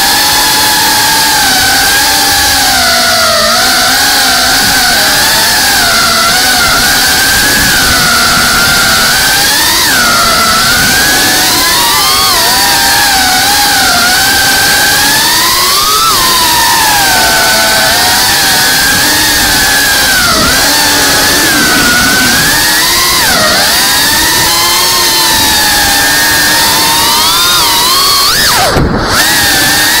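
A small drone's motors whine loudly and steadily, rising and falling in pitch as it speeds and turns.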